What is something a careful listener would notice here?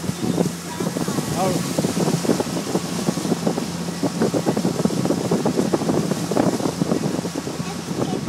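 Wind buffets the air outdoors.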